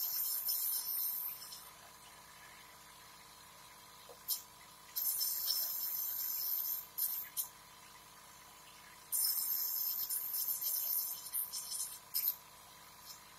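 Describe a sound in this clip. A man inhales through a nebulizer mouthpiece with a loud hiss.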